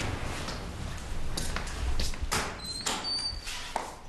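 A door opens and shuts.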